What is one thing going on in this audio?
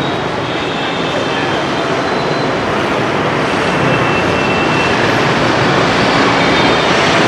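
Motorbike traffic hums steadily along a street outdoors.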